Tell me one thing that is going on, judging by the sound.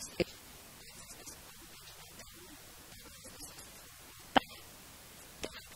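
A young woman speaks calmly into a microphone up close.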